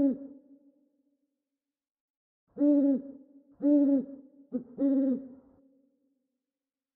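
An owl hoots in a series of low calls.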